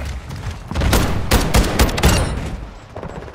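Rapid gunshots fire at close range.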